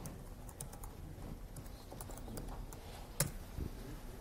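Keys clack on a laptop keyboard in quick bursts.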